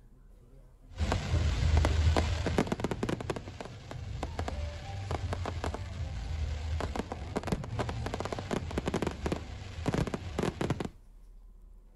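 Fireworks crackle and pop in quick bursts outdoors.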